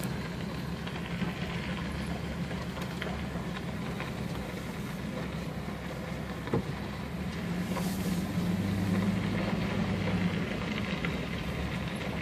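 Tyres crunch and rumble over a gravel road.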